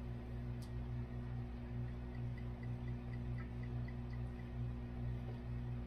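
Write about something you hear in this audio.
Liquid glugs as it is poured from a bottle into a metal cup.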